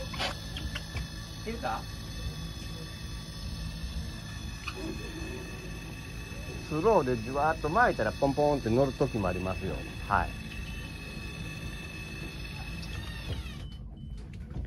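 An electric fishing reel whirs steadily, then stops.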